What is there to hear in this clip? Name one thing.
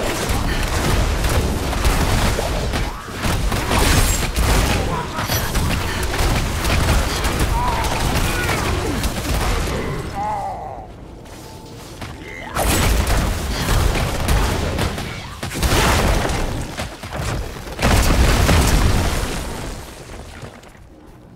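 Magic blasts burst and crackle.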